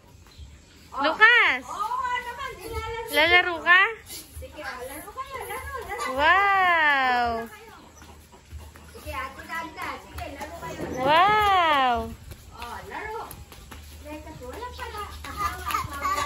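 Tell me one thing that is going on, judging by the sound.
Young children shout and squeal while playing outdoors.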